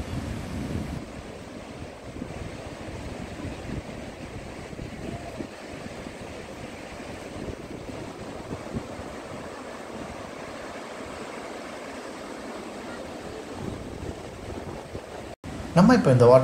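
A waterfall roars steadily in the distance.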